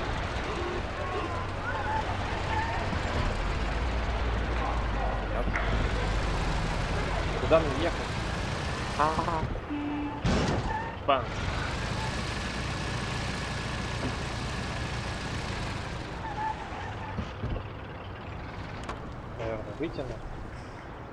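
An old car engine rumbles as the car drives.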